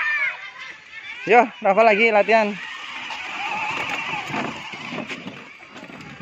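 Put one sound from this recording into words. A small electric motor whirs as a toy car drives along.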